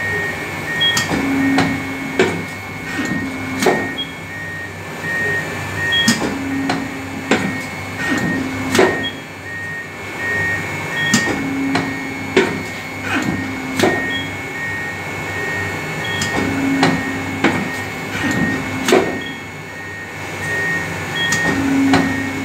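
A heavy metal blade clunks down and back up in a steady rhythm.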